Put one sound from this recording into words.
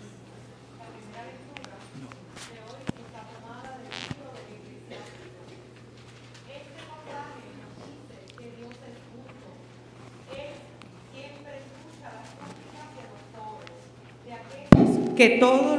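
A man murmurs prayers quietly in a reverberant hall.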